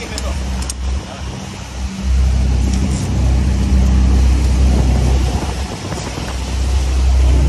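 Rough waves wash against a boat's hull.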